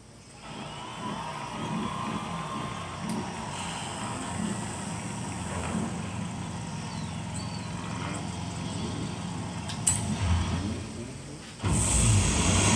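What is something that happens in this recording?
Music plays through a television's loudspeakers.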